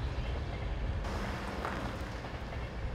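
A van drives past on the road.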